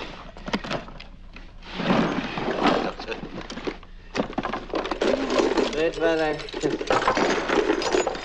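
Latches on a case click and rattle.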